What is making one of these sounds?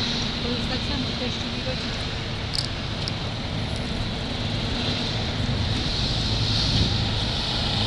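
Outdoors, street traffic hums steadily.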